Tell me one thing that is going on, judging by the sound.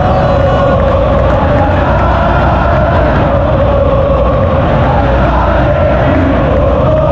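A large crowd of men and women chants loudly in unison in a huge open stadium.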